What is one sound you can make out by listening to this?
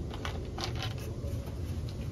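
A plastic bottle cap is twisted and the bottle crinkles.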